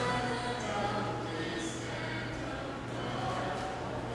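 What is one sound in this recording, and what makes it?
A young girl speaks into a microphone, heard through loudspeakers in a large room.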